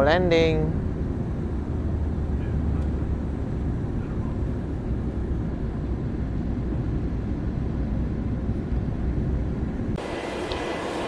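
A jet plane's engines roar steadily from inside the cabin.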